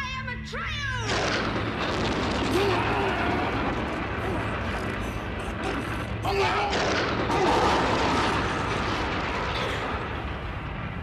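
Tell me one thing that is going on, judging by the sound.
A beast snarls and growls loudly.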